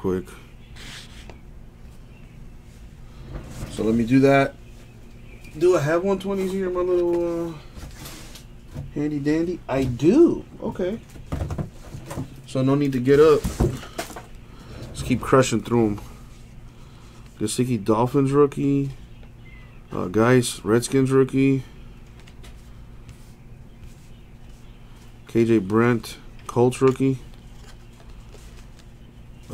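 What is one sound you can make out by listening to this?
Trading cards rustle and slide against each other as hands sort through them.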